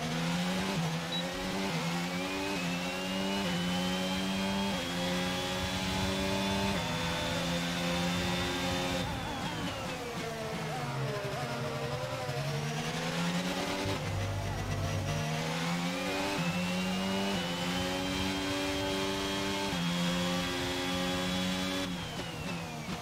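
A racing car engine screams, rising through the gears and dropping as it slows for corners.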